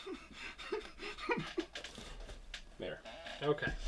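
A cardboard box rustles as it is lifted.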